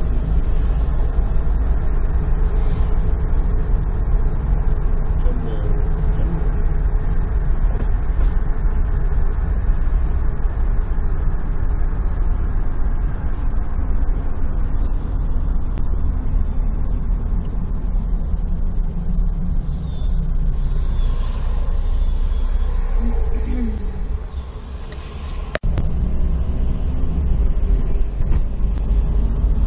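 A vehicle engine rumbles steadily from inside a moving car.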